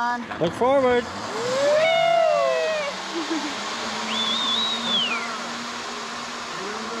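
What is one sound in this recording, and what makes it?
A zip line trolley whirs along a cable, fading into the distance.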